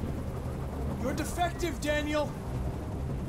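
A man speaks calmly and firmly.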